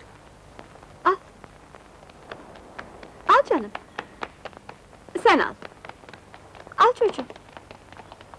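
A woman speaks in short bursts, close by.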